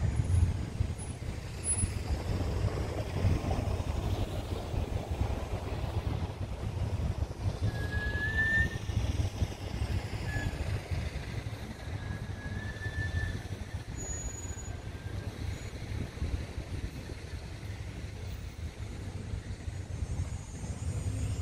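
Wind rumbles low and steadily outdoors.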